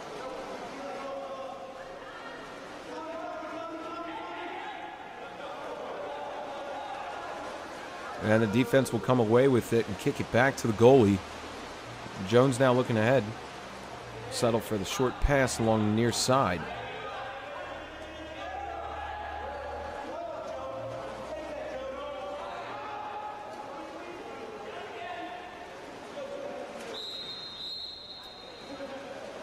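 Players splash and thrash in the water of a pool.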